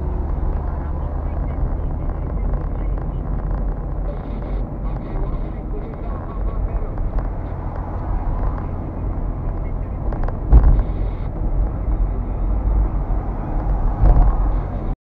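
Tyres roll over a wet road with a steady rumble.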